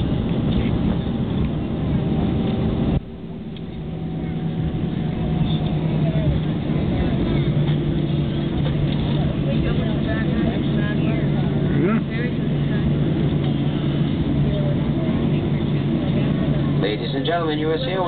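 Jet engines roar steadily inside an aircraft cabin as it rolls down a runway.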